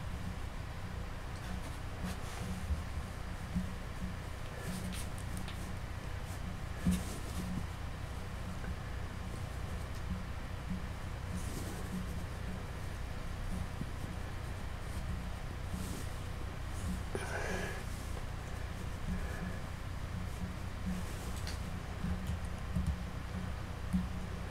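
A small tool scrapes and taps softly on a clay sculpture.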